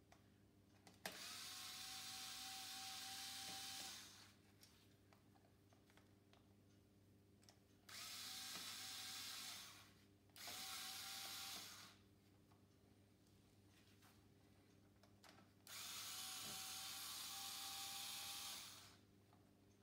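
A cordless power ratchet whirs in loud bursts as it spins bolts.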